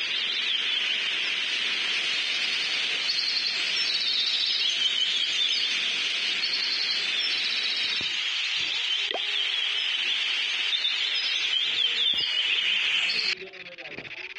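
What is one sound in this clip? Cheerful video game ambience with chirping birds plays steadily, then cuts off abruptly.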